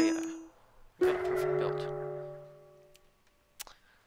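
A short fanfare of game tones plays.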